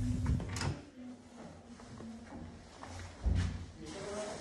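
A door latch clicks as a door swings open.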